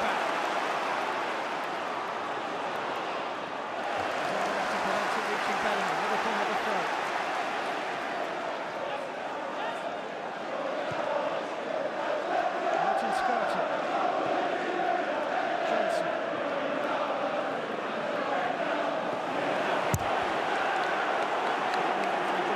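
A large stadium crowd chants and sings loudly throughout.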